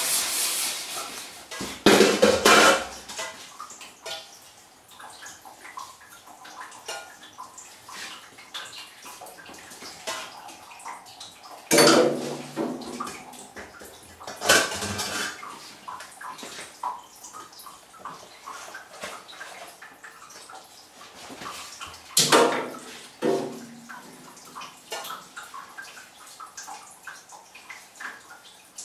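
Wet soft cheese squelches as it is pressed by hand.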